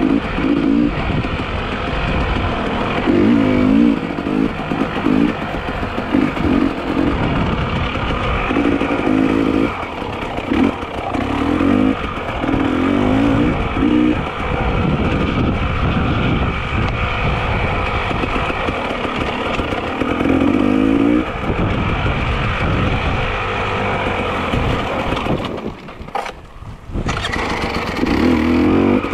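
Bicycle tyres crunch and rattle over a dirt and rocky trail.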